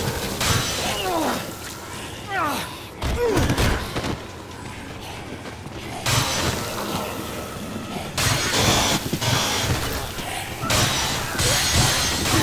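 Heavy blows thud and smack repeatedly.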